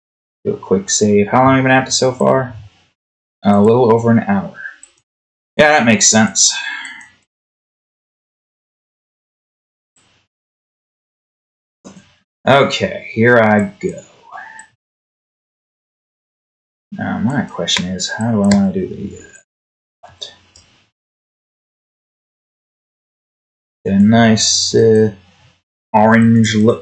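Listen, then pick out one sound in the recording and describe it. A young man talks calmly into a close microphone, pausing between phrases.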